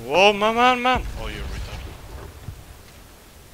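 A fire bursts into flames with a deep, rumbling whoosh.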